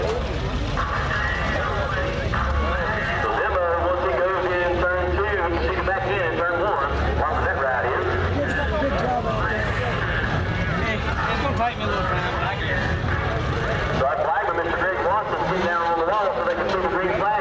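Race car engines roar and rev in the distance.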